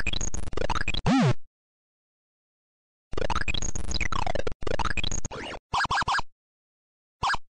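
Electronic game bleeps and chirps play in quick bursts.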